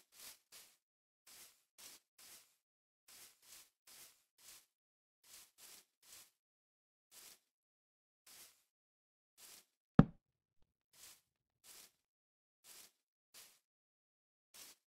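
Footsteps crunch softly on grass at a steady walking pace.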